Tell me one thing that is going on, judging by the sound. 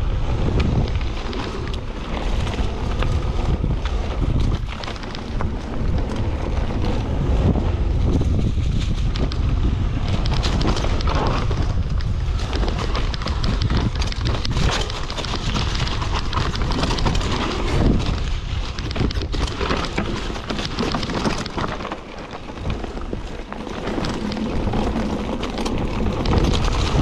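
Wind rumbles loudly against a microphone.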